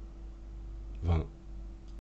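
A man speaks a short word close to a microphone.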